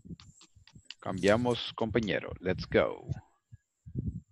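A second man speaks briefly over an online call.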